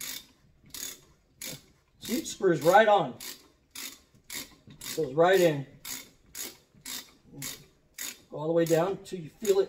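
A hand saw rasps back and forth through metal in quick, even strokes.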